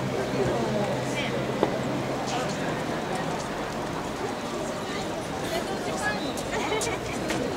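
Men chant in rhythm as they carry a shrine.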